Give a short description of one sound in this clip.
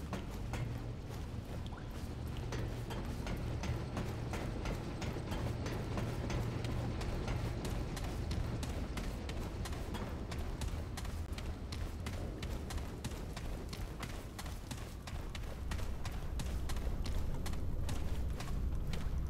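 Footsteps thud on hard floors at a steady walking pace.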